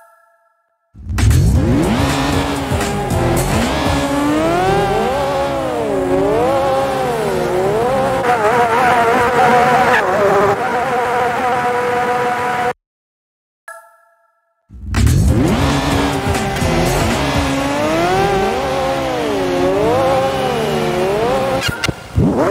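Several racing car engines idle and rev up and down.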